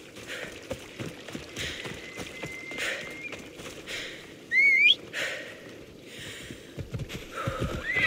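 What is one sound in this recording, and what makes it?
Footsteps run over grass and gravel.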